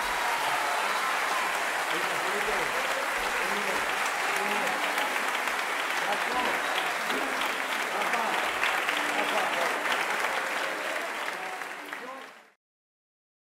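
A crowd of men and women chatters loudly.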